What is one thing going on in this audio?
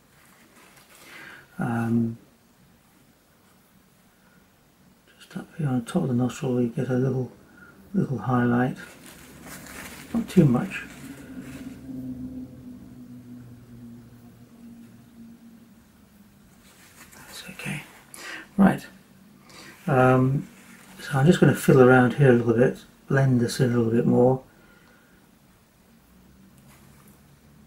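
A brush dabs softly on paper.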